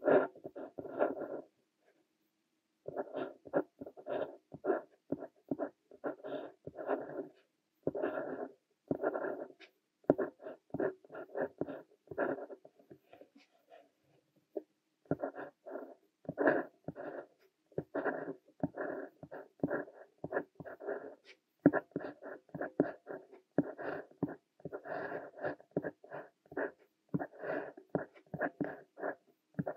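A fountain pen scratches across paper in short strokes, close up.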